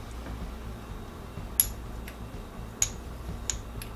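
A spice shaker rattles over a pan.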